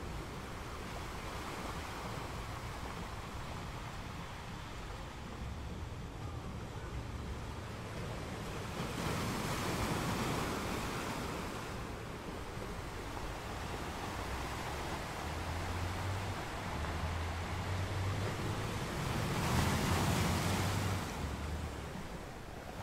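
Water rushes and hisses steadily over rocks.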